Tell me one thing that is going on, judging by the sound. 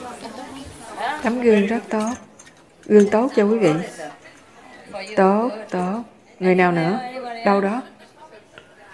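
A woman speaks calmly and clearly into a microphone.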